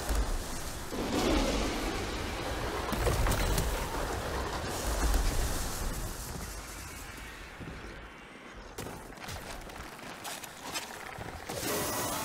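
Wind rushes and roars as a figure glides through the air.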